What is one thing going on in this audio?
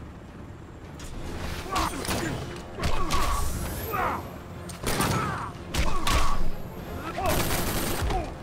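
Fighters trade heavy punches and kicks with loud thuds and whooshes.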